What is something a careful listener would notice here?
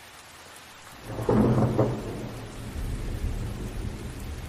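Thunder rumbles and booms.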